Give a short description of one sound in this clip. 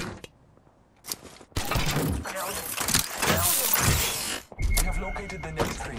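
A mechanical lever clunks as it is pulled.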